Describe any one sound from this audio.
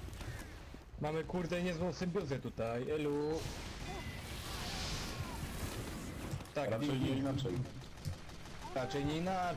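A man talks with animation through a microphone.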